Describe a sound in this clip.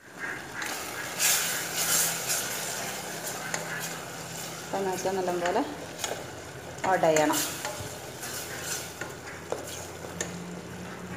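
A wooden spoon stirs a thick tomato sauce in a steel pot.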